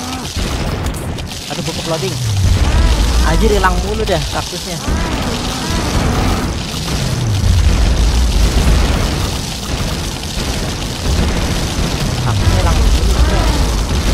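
Rapid popping shots crackle steadily.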